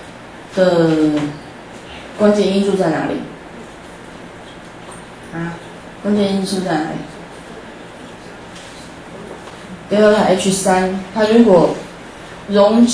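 A woman lectures into a microphone in short, measured phrases.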